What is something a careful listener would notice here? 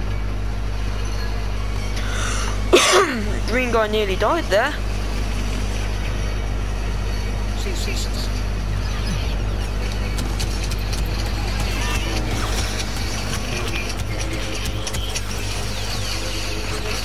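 A laser sword hums steadily.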